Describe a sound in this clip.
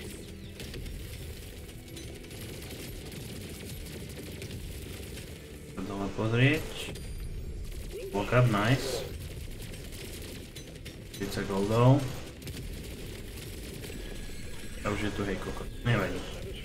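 Video game guns fire in rapid bursts.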